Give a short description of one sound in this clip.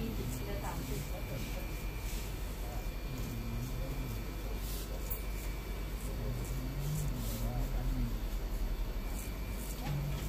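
A straight razor scrapes through stubble.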